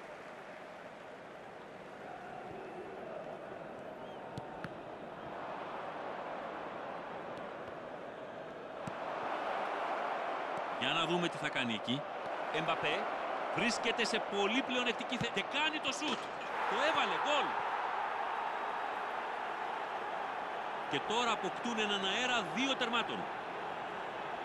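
A stadium crowd roars steadily, swelling louder partway through.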